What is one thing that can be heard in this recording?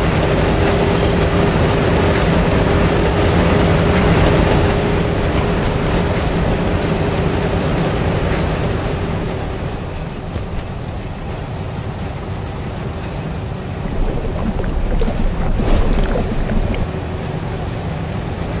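A low machine hum drones steadily, echoing in a large metal space.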